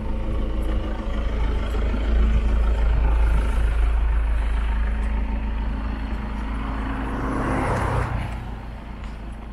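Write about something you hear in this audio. A car approaches and passes close by.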